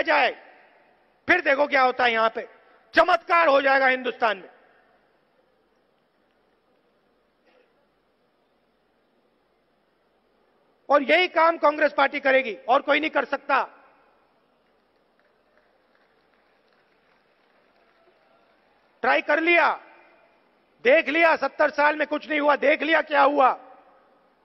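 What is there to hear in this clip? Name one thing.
A man speaks forcefully into a microphone through a loudspeaker, in bursts with long pauses.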